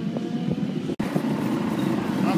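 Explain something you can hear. Motorcycle engines rumble close by.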